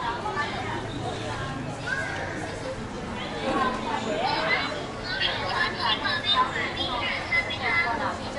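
Men and women chatter around outdoors, their voices mixing.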